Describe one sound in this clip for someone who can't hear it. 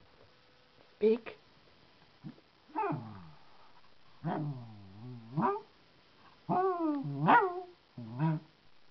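A small dog whines and howls in short, rising and falling cries, close by.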